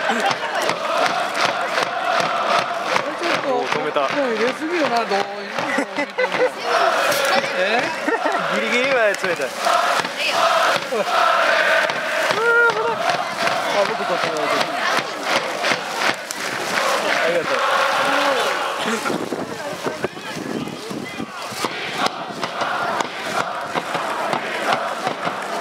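A large crowd chants and sings loudly in an open stadium.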